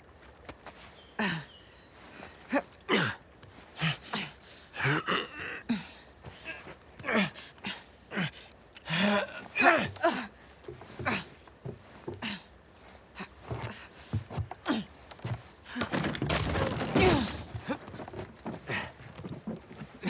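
A man talks with animation.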